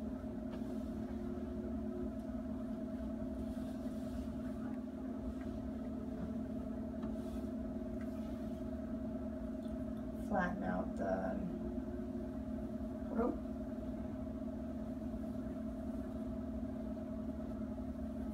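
Thick fabric rustles as it is rolled and folded.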